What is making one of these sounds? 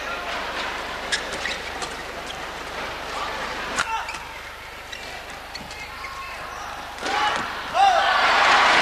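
Shuttlecock hits from rackets crack sharply in a large echoing hall.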